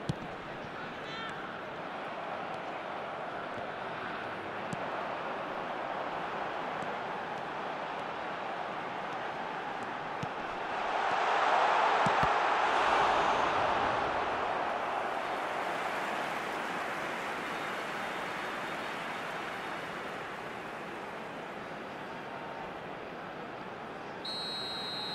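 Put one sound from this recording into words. A large stadium crowd roars steadily, swelling to a loud cheer and then slowly settling.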